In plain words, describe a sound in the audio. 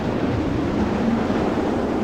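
A burst of magical smoke whooshes.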